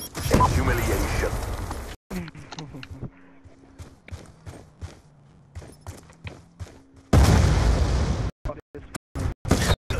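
Gunfire cracks in short, sharp bursts.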